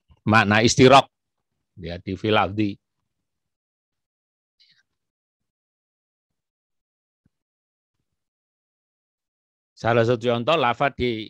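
A man speaks calmly into a microphone, as if over an online call.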